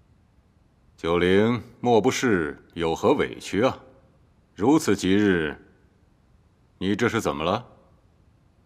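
A middle-aged man speaks with emotion, close by.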